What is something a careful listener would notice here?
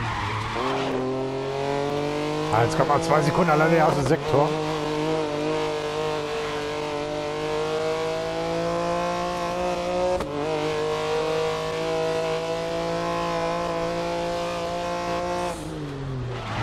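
A racing prototype's engine screams at high revs, shifting up through the gears.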